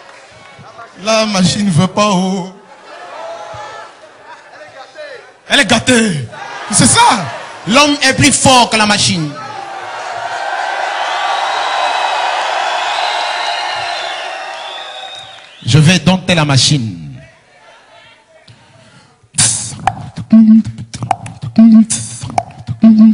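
A young man beatboxes loudly into a microphone, making quick drum-like beats and vocal sounds.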